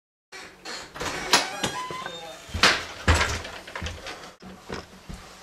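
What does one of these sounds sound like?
A door latch clicks and a door swings open.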